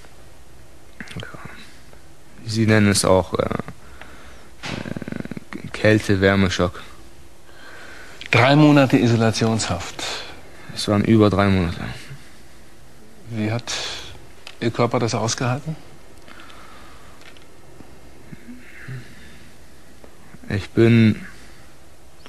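A man speaks calmly and quietly, close by.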